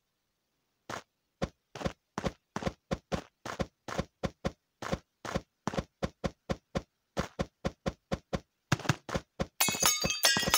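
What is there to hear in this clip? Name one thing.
Quick light footsteps patter in a steady run.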